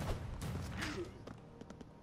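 A blast booms.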